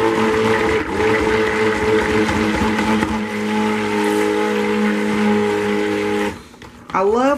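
A stick blender whirs steadily in a liquid, then stops.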